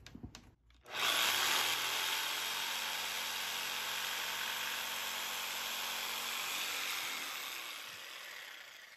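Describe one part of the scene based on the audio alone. A jigsaw cuts through a wooden board.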